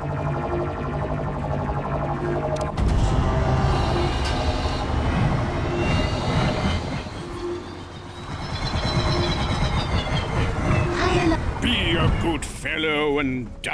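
Electricity crackles and buzzes around a humming machine.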